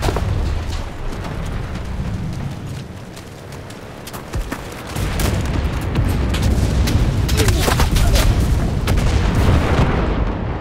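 Gunfire cracks and pops in rapid bursts nearby.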